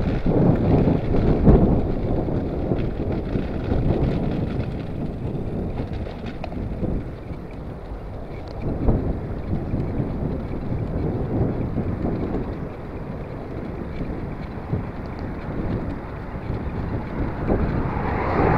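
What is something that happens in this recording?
Bicycle tyres roll on smooth tarmac.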